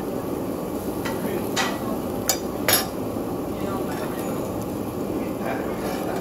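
Metal tongs click against a wire grill.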